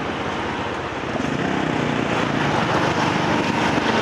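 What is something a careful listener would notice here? Another motorbike rides close alongside with a louder engine rumble.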